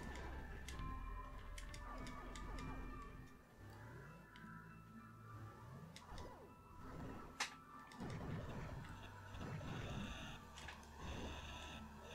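Retro video game music and sound effects play.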